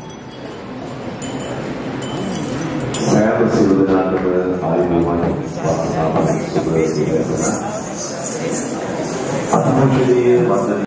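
A crowd of people murmurs and chatters in a large hall.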